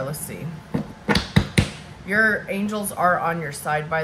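Cards slide and tap on a wooden table.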